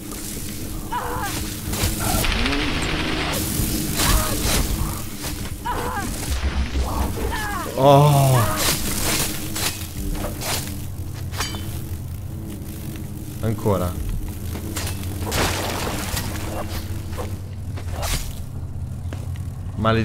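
Game sound effects thud and clatter.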